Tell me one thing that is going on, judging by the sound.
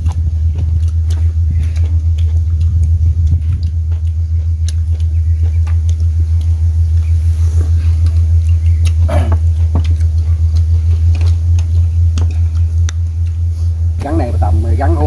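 A spoon clinks against bowls.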